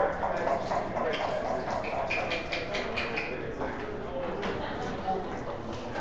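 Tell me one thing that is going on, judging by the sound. Checkers click against one another as they are slid across a wooden board.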